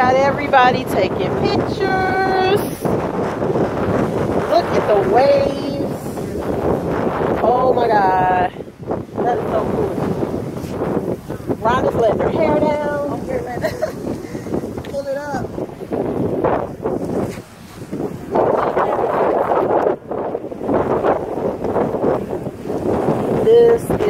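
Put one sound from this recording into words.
Waves crash and wash over rocks nearby.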